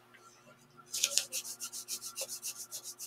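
A marker scratches quickly in short strokes.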